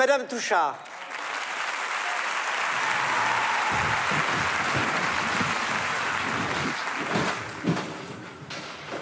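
A large audience applauds loudly in a hall.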